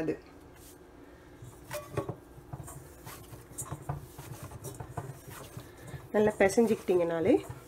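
A metal bowl scrapes and knocks softly.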